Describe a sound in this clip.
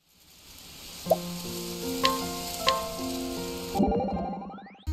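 Short chiming tones play in a quick melody.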